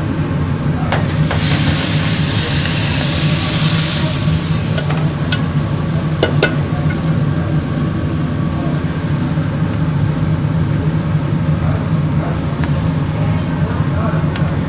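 Metal tongs clink against a wire grill.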